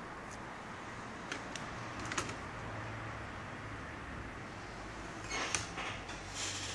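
Plastic parts click and creak as they are pried apart.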